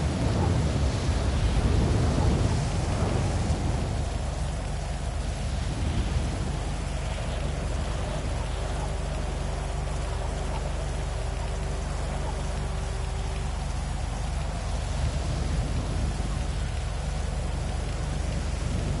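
Rain falls steadily on a wet street.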